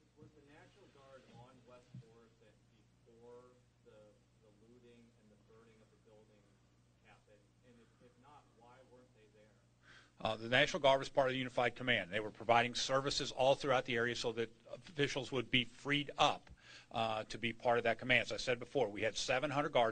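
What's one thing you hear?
An older man speaks firmly into a microphone.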